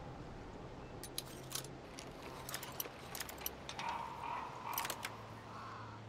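Metal lock picks click and scrape inside a lock.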